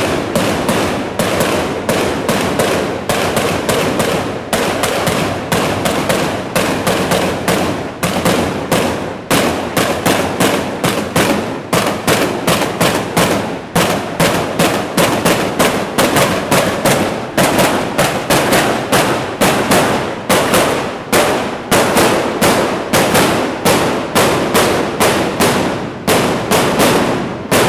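Fireworks crackle and bang in rapid bursts close by.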